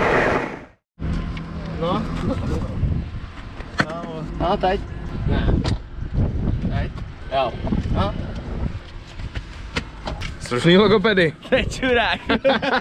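A young man talks casually close by.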